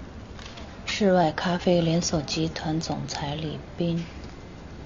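A woman reads out aloud in a clear, calm voice.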